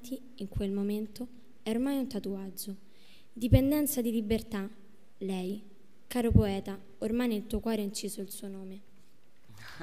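A girl speaks into a microphone, heard through loudspeakers.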